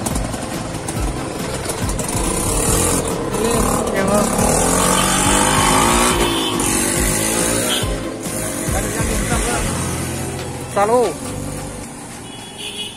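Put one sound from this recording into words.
An auto-rickshaw engine rumbles and idles close by.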